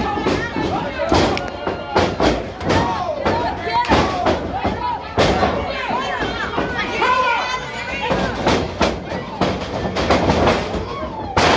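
Slaps ring out sharply as wrestlers strike each other.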